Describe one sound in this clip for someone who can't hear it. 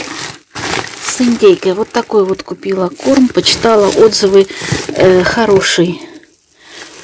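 Plastic wrapping crinkles under a hand.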